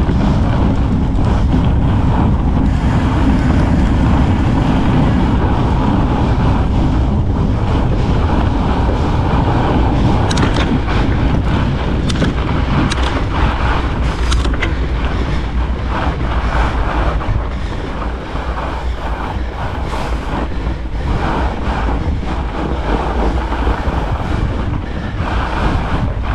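Bike tyres crunch steadily over packed snow.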